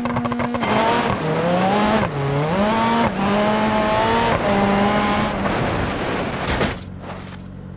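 A rally car engine revs hard and rises in pitch through several gear shifts.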